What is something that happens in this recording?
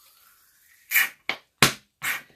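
A plastic bottle cap clicks open.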